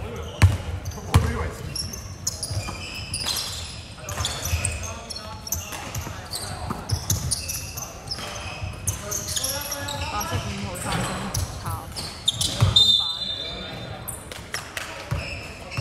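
Young men call out to each other during play in a large echoing hall.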